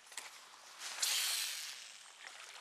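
A fish splashes into shallow water.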